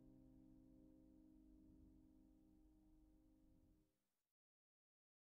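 A piano plays a sustained chord that slowly fades away.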